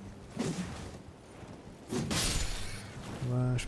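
A horse gallops over grass.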